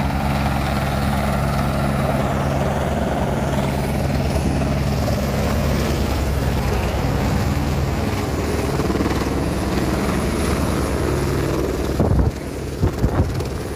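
A helicopter's rotor thumps loudly close by as it hovers and lands.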